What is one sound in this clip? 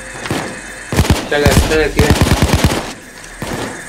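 A gun fires a rapid burst of loud shots.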